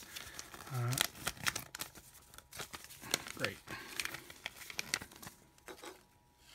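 Paper crinkles and rustles as it is handled.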